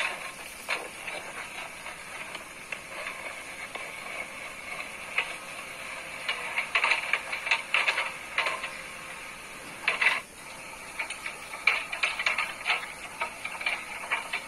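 A digger bucket scrapes and crunches into rocky soil.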